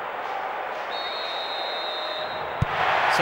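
A referee's whistle blows a short steady note.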